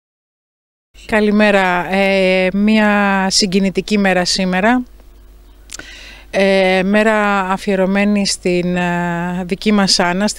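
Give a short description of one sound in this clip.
A middle-aged woman speaks calmly and clearly into a microphone close by, outdoors.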